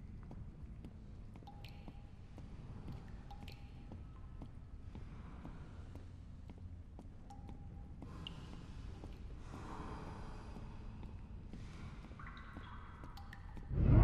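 Water trickles and laps steadily nearby.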